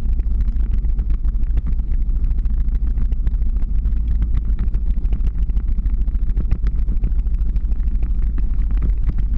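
Wind buffets loudly and steadily, as if heard while moving fast.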